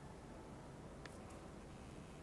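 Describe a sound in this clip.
A window latch clicks.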